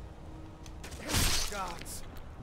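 A blade strikes flesh with a sharp hit.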